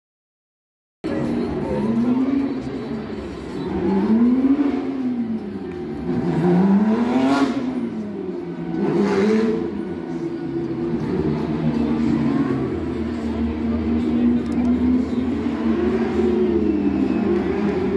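Race car engines roar loudly, rising and falling in pitch as they drive by.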